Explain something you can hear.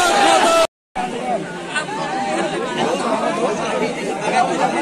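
A crowd murmurs and talks nearby.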